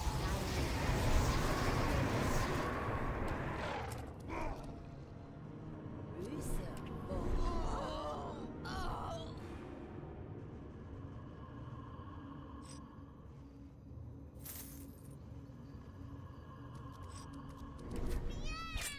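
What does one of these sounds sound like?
Game spell effects whoosh and burst.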